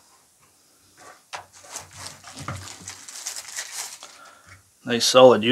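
A plastic bag crinkles and rustles as it is pulled open.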